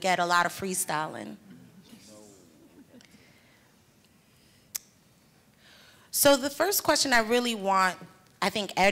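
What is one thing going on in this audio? A woman speaks into a microphone, heard through loudspeakers in a large hall.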